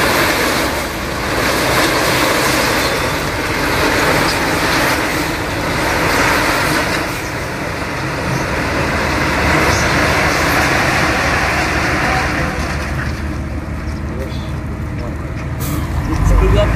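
Gravel pours and rattles out of a tipping truck bed.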